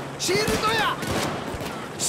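A shotgun fires a shot.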